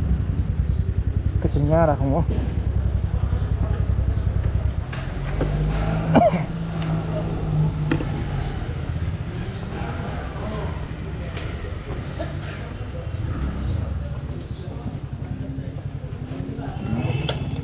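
A scooter engine hums steadily at low speed.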